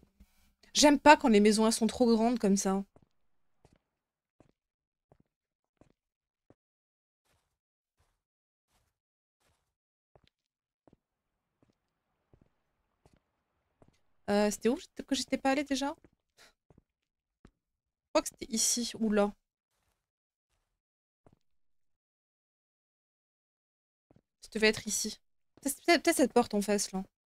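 A young woman talks into a microphone in short bursts.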